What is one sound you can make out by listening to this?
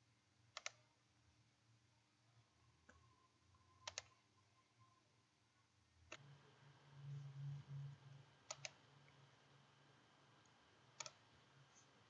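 A computer mouse clicks now and then.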